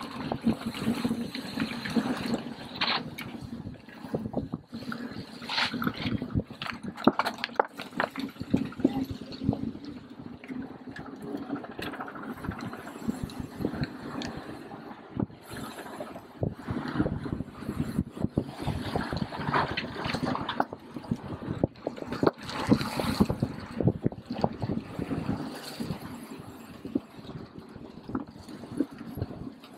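Bicycle chains and gears click and rattle as riders pedal.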